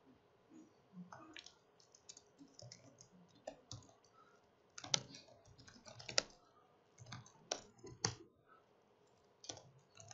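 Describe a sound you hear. Keys click rapidly on a laptop keyboard.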